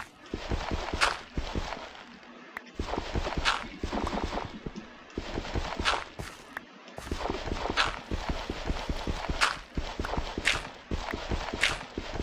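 Blocks of dirt crunch rapidly as they are dug.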